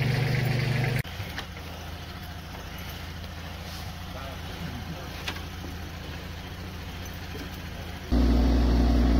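A car engine idles quietly nearby.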